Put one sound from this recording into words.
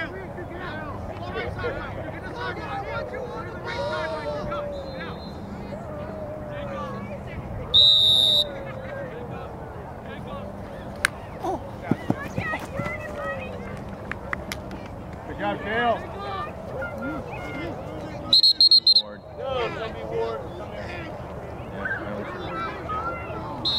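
Young players call out to each other across an open field.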